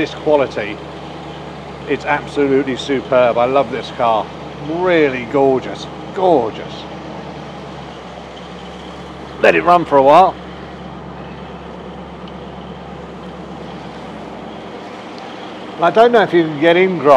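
A man talks calmly and with enthusiasm close by.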